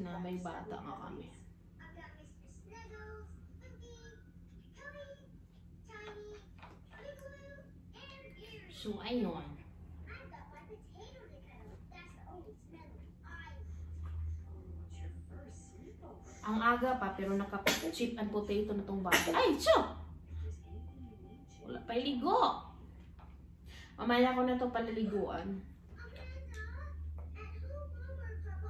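A woman talks close by to a toddler, sometimes animated.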